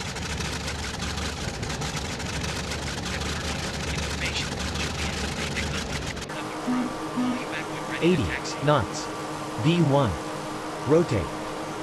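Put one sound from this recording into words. Aircraft propeller engines hum steadily.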